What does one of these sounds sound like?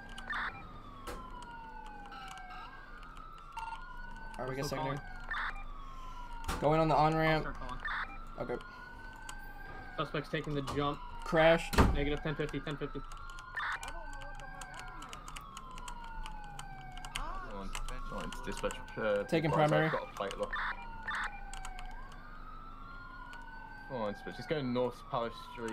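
A police siren wails up and down steadily.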